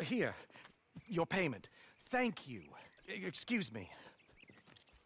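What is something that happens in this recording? A man with a deep voice answers briefly and calmly.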